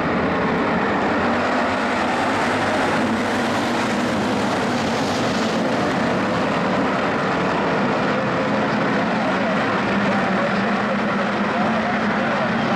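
Many race car engines roar loudly together.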